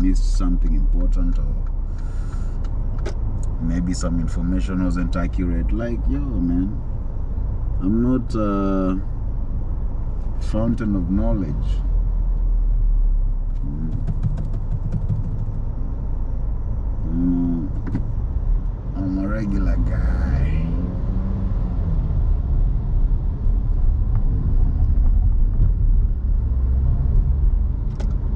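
A car engine hums steadily as the car drives slowly in traffic.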